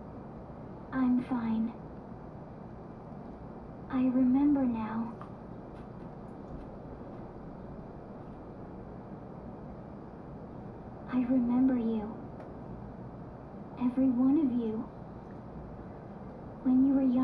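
A young girl speaks softly in short phrases.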